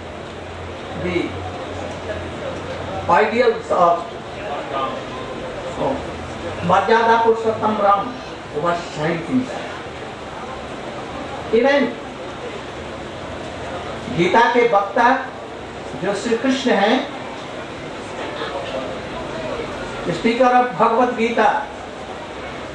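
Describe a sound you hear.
An elderly man speaks slowly and with emphasis into a microphone, with pauses between phrases.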